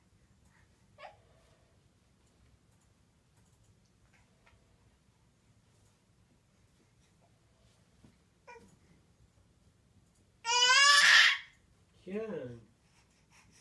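A baby squeals and babbles loudly nearby.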